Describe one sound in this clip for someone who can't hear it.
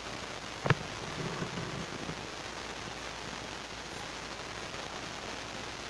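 A man speaks quietly close by.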